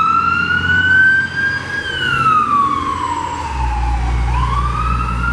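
An engine rumbles as a heavy truck drives past.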